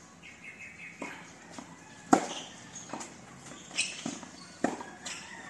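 A tennis ball is struck with a racket outdoors.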